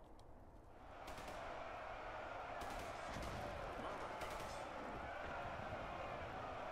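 A large army charges with rumbling footsteps.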